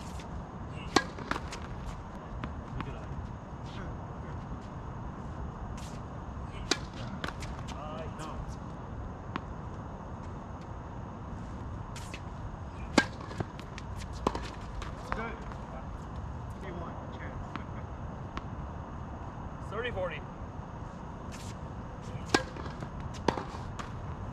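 Tennis balls are struck with rackets in a rally.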